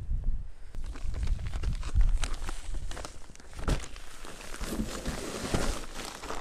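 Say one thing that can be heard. A paper sack rustles and scrapes as it is handled.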